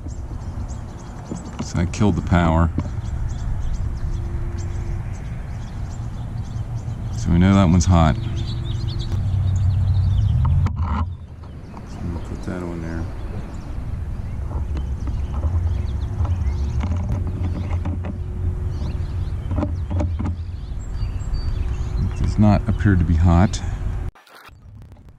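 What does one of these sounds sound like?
Wind rumbles over the microphone outdoors.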